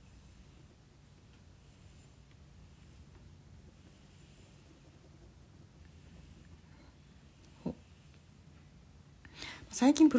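A fine pen scratches softly on paper.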